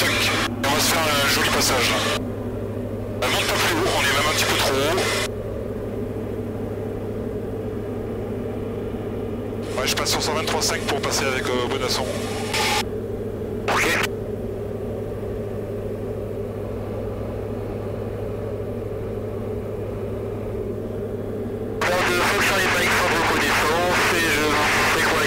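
A man talks calmly over a headset intercom, in short bursts.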